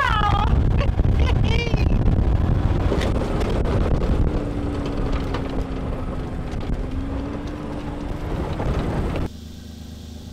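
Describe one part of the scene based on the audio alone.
A vehicle engine rumbles while driving over a rough track.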